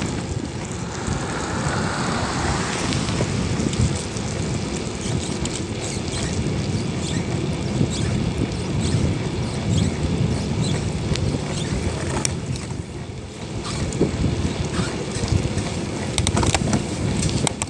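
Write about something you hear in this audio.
Wind rumbles and buffets outdoors while riding along a road.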